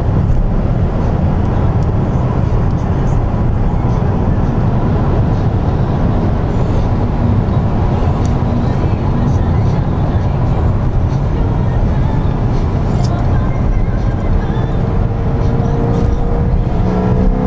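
A sports car engine roars at high speed, heard from inside the car.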